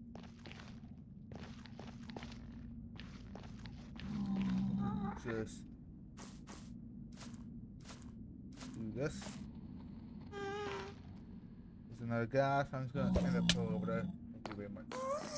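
Footsteps crunch on soft ground.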